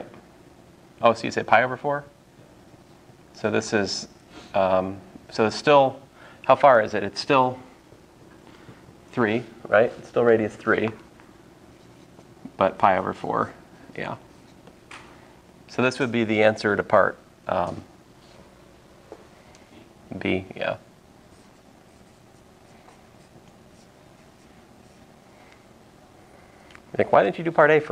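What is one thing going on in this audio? A man explains calmly and clearly, pausing often.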